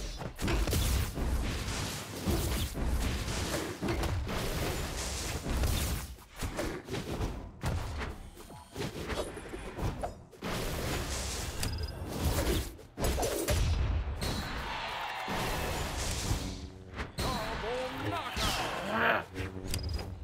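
Punches, blasts and impacts crack in quick bursts during a fight.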